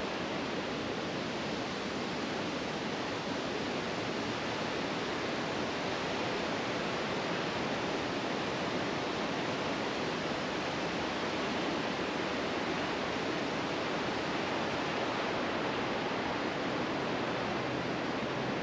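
Wind rustles through tree branches.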